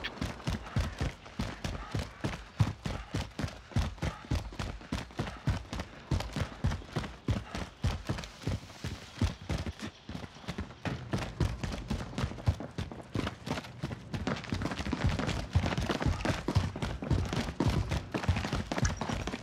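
Quick footsteps thud steadily on hard ground.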